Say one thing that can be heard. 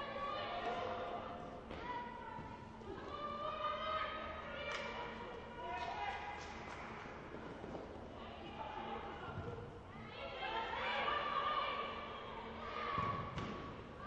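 A ball thuds as it is kicked across a hard court in an echoing hall.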